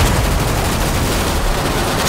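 A rifle magazine is swapped with metallic clicks.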